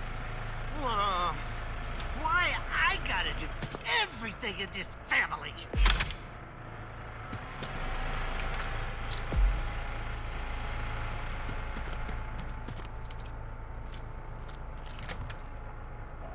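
A door latch clicks open.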